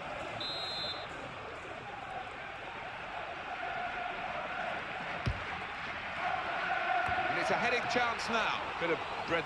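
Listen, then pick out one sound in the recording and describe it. A large crowd roars steadily in a stadium.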